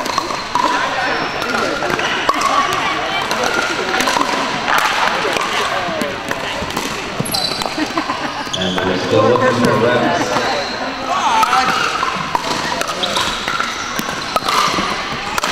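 Paddles hit a plastic ball with sharp pops in a large echoing hall.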